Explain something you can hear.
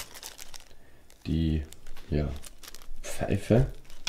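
Plastic wrapping crinkles in a hand.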